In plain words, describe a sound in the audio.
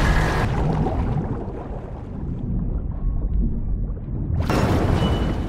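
Water bubbles and gurgles, muffled, while someone swims underwater.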